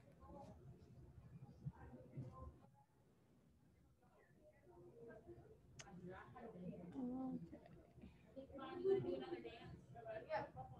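A young woman speaks calmly and close by, her voice slightly muffled.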